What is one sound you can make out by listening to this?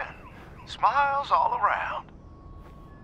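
A man speaks with animation, heard through a microphone.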